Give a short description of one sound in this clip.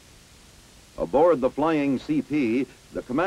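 A man speaks calmly over a radio headset.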